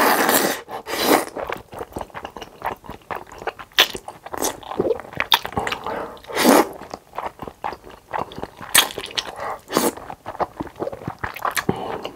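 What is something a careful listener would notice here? A young man chews noisily with wet smacking sounds.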